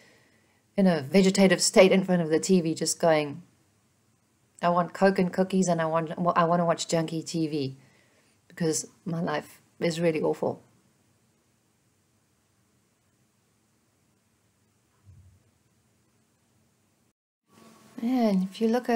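A woman speaks calmly and thoughtfully, close to a microphone, with pauses.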